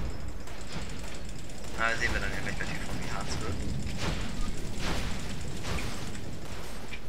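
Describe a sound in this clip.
Fiery explosions burst and crackle in a game.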